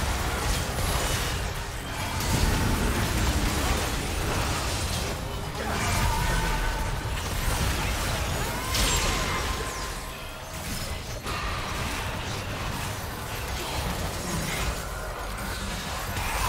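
Spell blasts, hits and magical effects crackle and burst in a busy game battle.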